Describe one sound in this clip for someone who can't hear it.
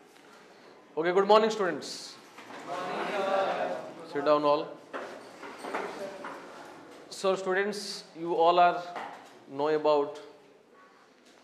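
A man speaks calmly and clearly into a clip-on microphone.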